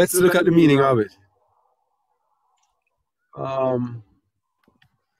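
A man speaks through an online call, in short bursts with long pauses.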